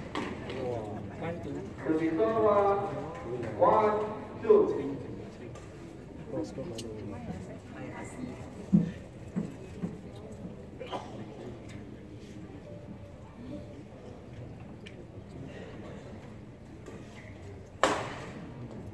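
A shuttlecock is struck sharply with a racket, echoing in a large hall.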